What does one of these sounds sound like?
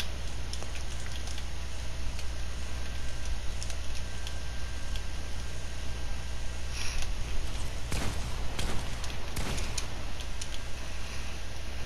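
Wooden building pieces clack rapidly into place.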